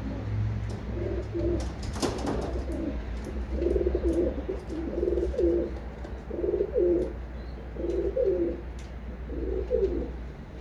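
Homing pigeons coo.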